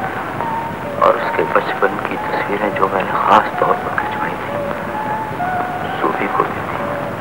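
A man speaks with strong emotion, heard through a worn, hissy old recording.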